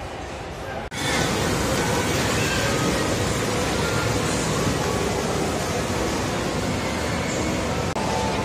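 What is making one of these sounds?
Small electric ride cars hum along a track.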